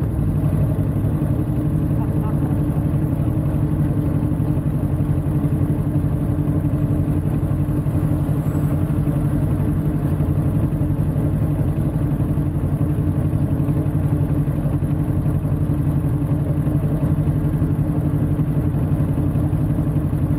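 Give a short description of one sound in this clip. A motorcycle engine idles close by with a steady low rumble.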